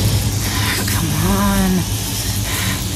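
A young woman cries out in strain.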